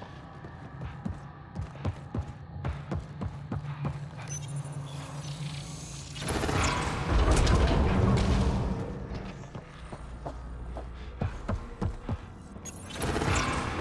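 Heavy boots clank on a hard metal floor.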